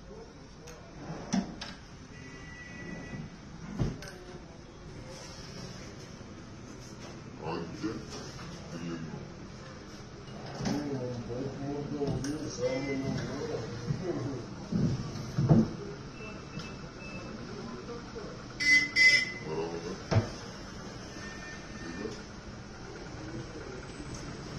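A wooden drawer slides open and shut with knocks and clicks.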